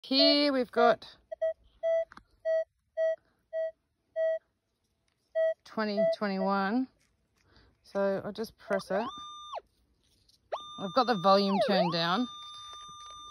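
A metal detector sounds loud warbling tones that rise and fall.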